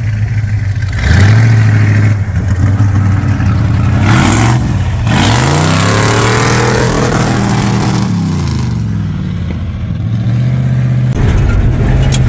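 A truck engine revs loudly and roars as it pulls away.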